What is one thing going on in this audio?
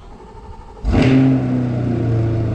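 A sports car engine starts with a loud roar.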